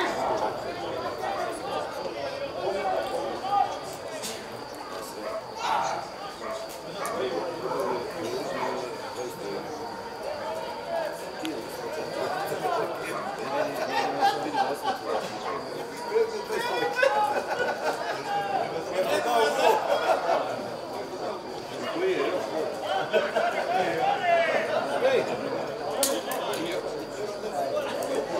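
Men shout to each other across an open field outdoors.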